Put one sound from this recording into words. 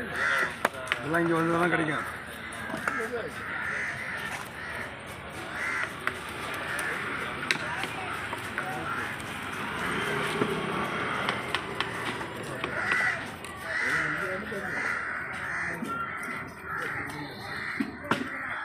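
A cleaver chops through fish on a wooden block with sharp knocks.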